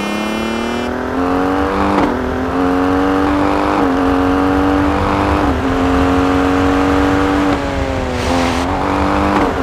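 A rally SUV's engine revs hard, climbing in pitch and dropping at each gear change.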